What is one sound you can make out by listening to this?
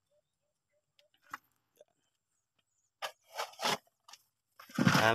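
Loose soil scrapes and crumbles as a man digs by hand.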